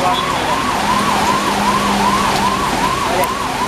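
A car splashes through deep floodwater.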